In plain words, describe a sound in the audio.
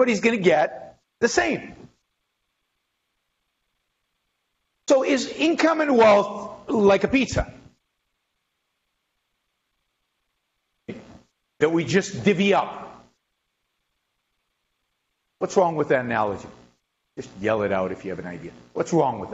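A middle-aged man speaks with animation through a microphone, with pauses between phrases.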